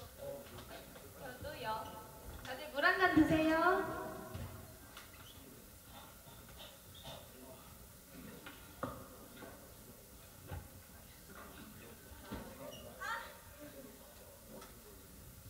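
Young women talk and laugh on stage.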